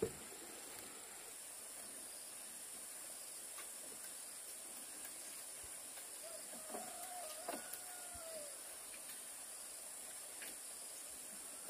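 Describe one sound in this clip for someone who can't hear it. Bamboo slats rattle as they are laid down.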